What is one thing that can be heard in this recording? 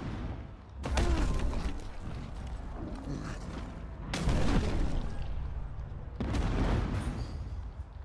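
Heavy punches land with loud thuds.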